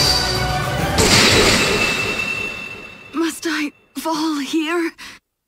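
A sword slashes with a sharp whoosh and clash.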